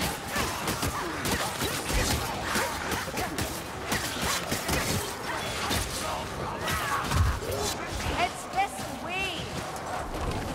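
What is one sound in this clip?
Creatures snarl and shriek during a fight.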